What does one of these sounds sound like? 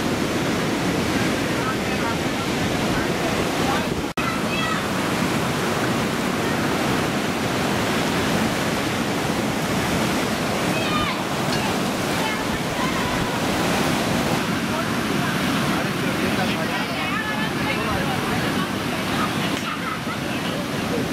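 Ocean waves crash and roll onto a beach in a steady roar.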